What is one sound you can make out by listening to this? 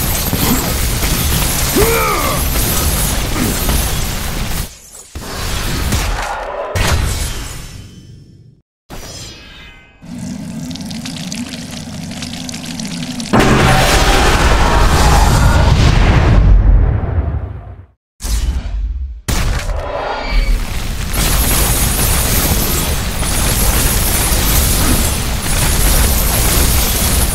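Blades slash and strike enemies in a fast flurry of hits.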